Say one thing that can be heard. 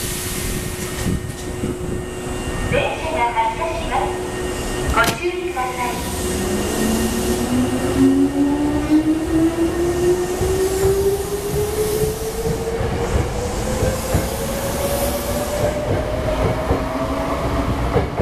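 A train pulls away from a platform with a low rumble.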